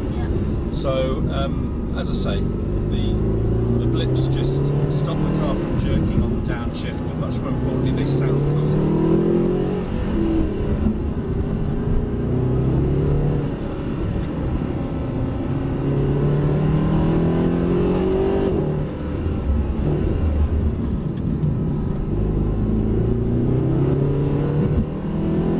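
A car engine revs hard, rising and falling as the gears change.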